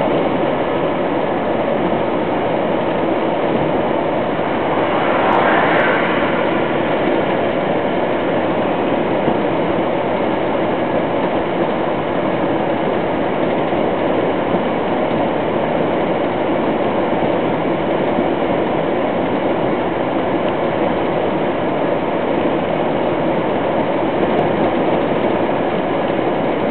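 A vehicle's engine hums steadily as it drives along a road.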